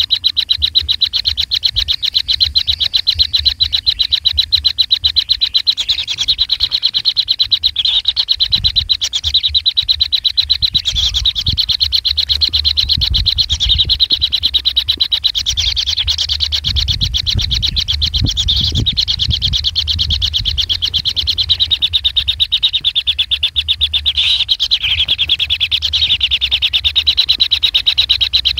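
Kingfisher nestlings make rapid, ticking begging calls.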